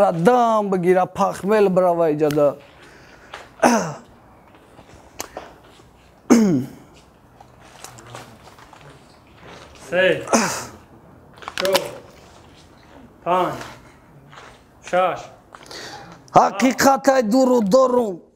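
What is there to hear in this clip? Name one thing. A young man raps energetically in short bursts, close by.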